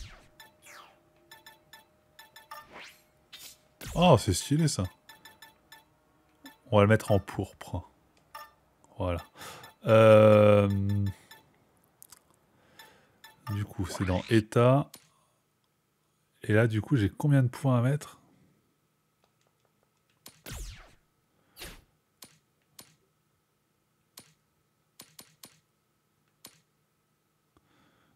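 Soft game menu blips tick as selections change.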